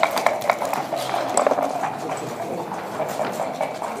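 Dice rattle and tumble across a wooden board.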